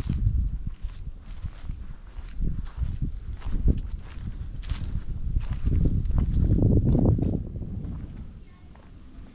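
Wind gusts outdoors with a low rumble.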